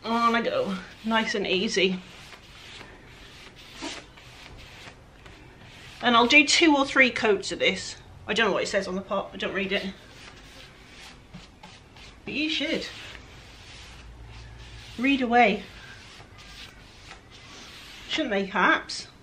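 A pad rubs softly across a wooden surface.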